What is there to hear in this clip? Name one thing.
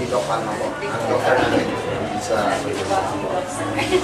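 A man greets others warmly.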